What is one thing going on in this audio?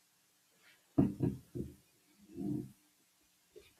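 A man speaks briefly into a microphone in a room.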